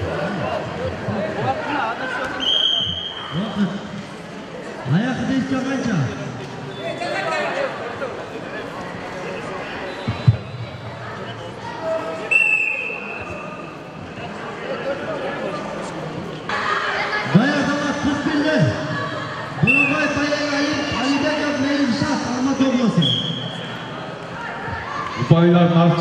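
A crowd of men and children shouts and chatters in an echoing hall.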